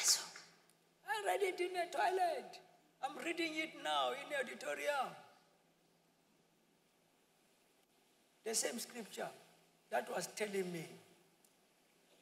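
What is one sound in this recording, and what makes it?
A man speaks calmly into a clip-on microphone in a large echoing hall.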